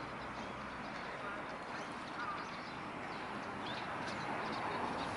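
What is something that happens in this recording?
Water ripples and laps gently.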